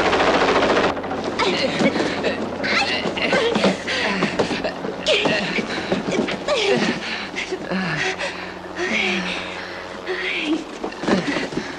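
A young woman moans softly close by.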